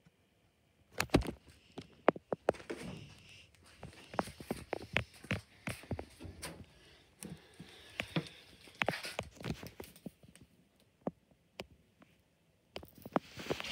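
Plastic bottles thump, knock and rattle as a hand handles them.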